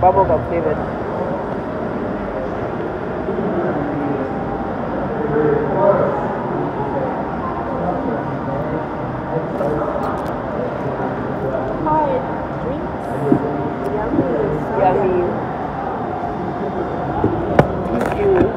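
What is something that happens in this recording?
A young woman slurps a drink through a straw.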